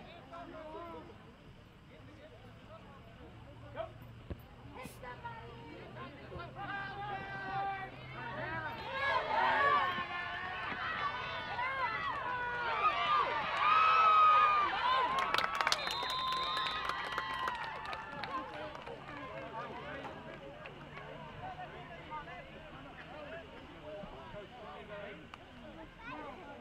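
A crowd in the stands cheers and shouts, swelling loudly during the play.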